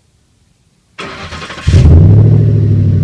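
A truck engine cranks and roars to life.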